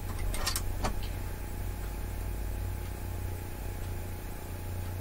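A sewing machine motor hums steadily.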